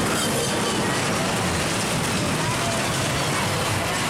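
Riders scream on a fairground ride.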